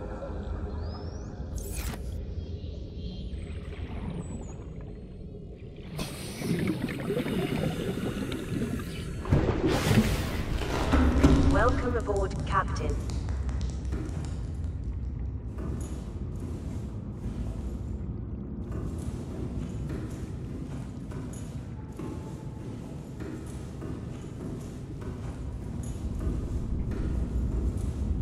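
A low underwater rumble hums steadily.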